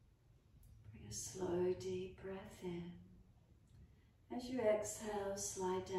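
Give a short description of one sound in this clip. A woman speaks calmly, close to the microphone.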